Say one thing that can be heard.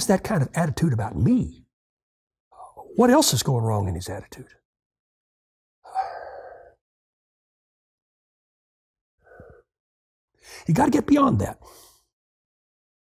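An elderly man speaks calmly and close to a microphone, with pauses between phrases.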